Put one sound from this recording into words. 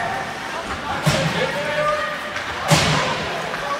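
Hockey sticks clack against a puck on the ice.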